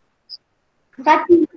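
A young boy speaks through an online call.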